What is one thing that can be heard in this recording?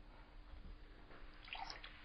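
Milk pours into a glass.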